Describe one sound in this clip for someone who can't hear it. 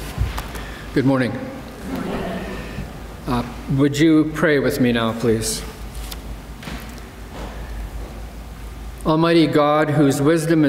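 An elderly man speaks slowly and calmly through a microphone in a large echoing room.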